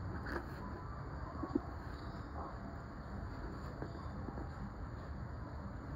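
A porcupine chews with soft, wet clicks close by.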